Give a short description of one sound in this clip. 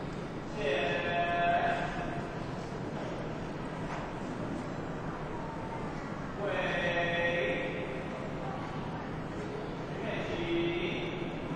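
A crowd of people chants in a large hall.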